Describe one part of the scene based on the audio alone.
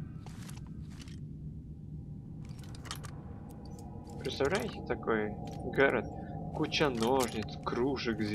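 A lock pick scrapes and clicks inside a door lock.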